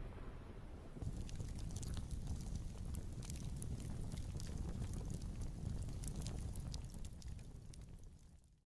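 A fire roars and crackles up close.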